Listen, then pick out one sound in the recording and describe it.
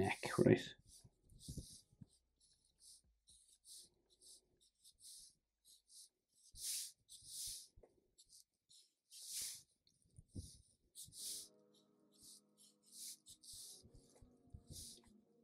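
A felt-tip marker squeaks and scratches on paper.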